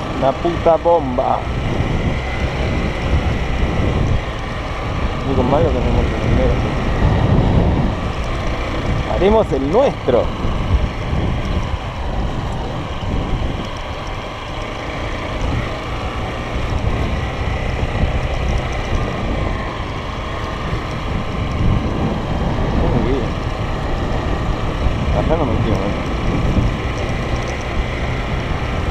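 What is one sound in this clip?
Wind blows steadily across open grassland.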